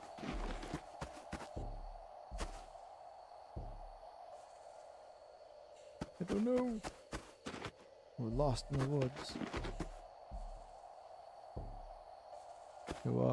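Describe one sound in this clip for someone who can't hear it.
Footsteps thud and rustle on dry leaves.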